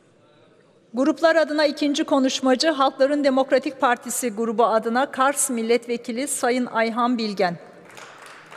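A woman speaks into a microphone with animation, her voice echoing in a large hall.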